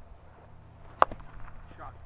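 A cricket bat cracks sharply against a ball.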